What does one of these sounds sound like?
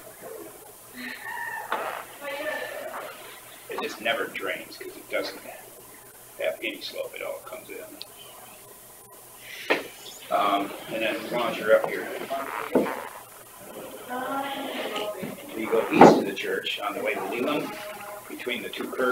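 Men talk calmly in a small room, picked up by a distant microphone.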